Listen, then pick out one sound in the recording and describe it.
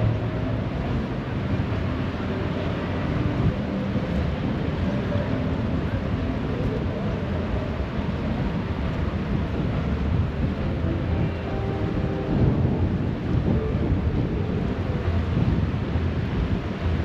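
A fast river rushes and churns steadily close by.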